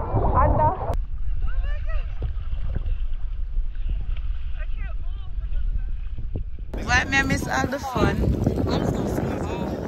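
Small waves lap gently against the water's surface.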